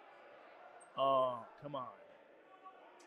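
A man shouts loudly in an echoing hall.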